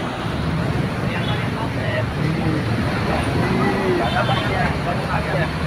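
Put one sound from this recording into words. Men talk among themselves in a busy crowd outdoors.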